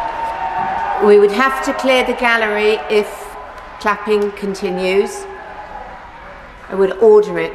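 A middle-aged woman speaks firmly into a microphone in a large echoing hall.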